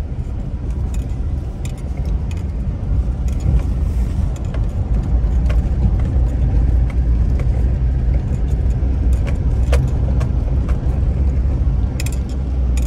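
Tyres rumble and rattle over an uneven road.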